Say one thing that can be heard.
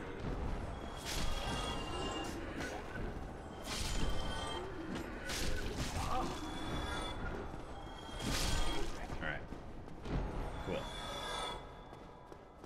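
Metal weapons clash and slash in a fight.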